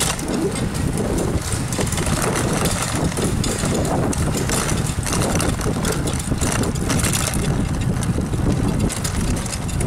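Bicycle tyres hum on smooth pavement.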